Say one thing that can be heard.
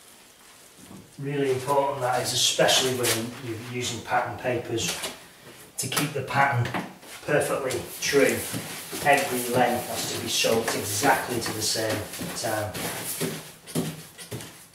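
A middle-aged man talks calmly.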